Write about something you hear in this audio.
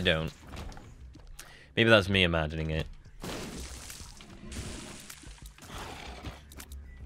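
Short wet splats and pops sound as shots hit.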